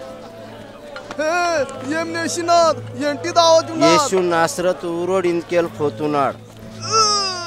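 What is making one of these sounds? A middle-aged man cries out loudly, pleading with strained emotion.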